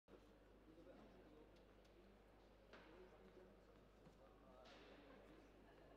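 A crowd murmurs quietly in the distance.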